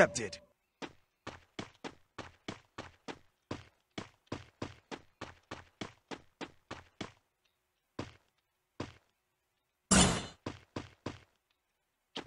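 Quick footsteps thud along the ground.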